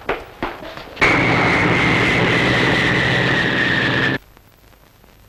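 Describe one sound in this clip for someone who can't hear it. An airplane engine roars low overhead, its pitch slowly falling.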